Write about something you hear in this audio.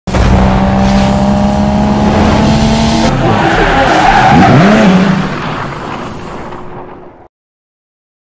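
A car engine roars as a car speeds past.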